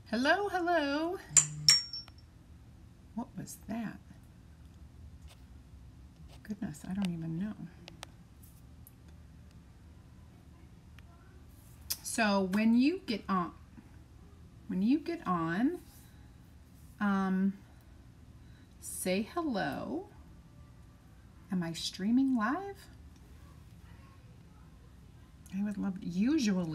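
A woman talks calmly into a nearby microphone, in short bursts with pauses.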